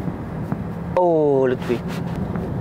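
A young man gasps and exclaims in surprise.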